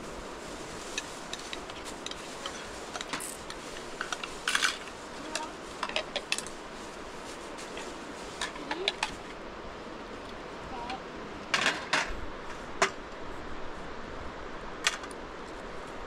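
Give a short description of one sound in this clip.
Dishes clink and clatter as a meal is served.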